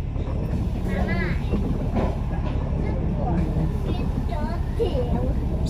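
A bus engine rumbles steadily from inside the vehicle.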